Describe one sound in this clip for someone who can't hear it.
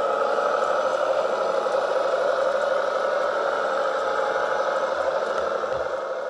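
Small electric motors of toy tractors whir steadily as the tractors drive over soil.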